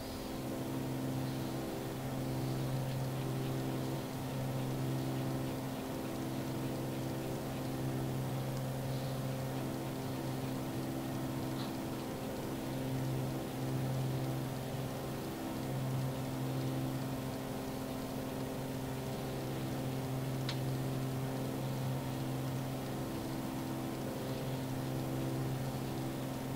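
A small propeller plane's engine drones steadily from inside the cockpit.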